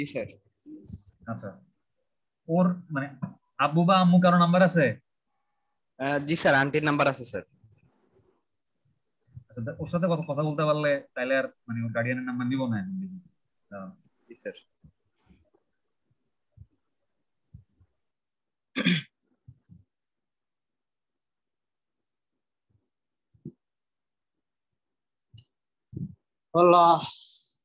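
A young man speaks calmly over an online call, in short bursts with pauses.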